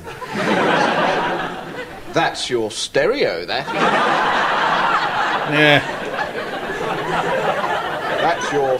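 An elderly man speaks calmly through a recording.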